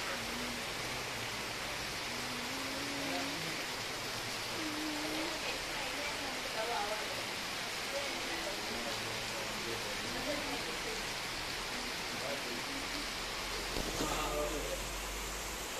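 Heavy rain pours steadily outdoors, hissing on the ground.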